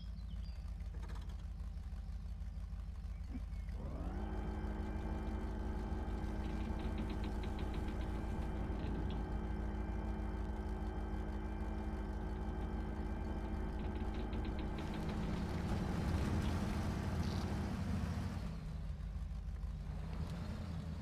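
A heavy truck engine idles with a low rumble.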